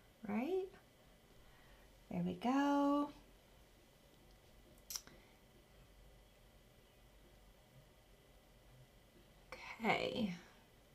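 A young woman speaks calmly and closely in short phrases.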